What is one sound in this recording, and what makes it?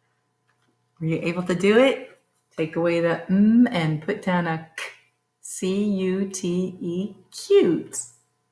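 A woman speaks clearly and cheerfully into a close microphone.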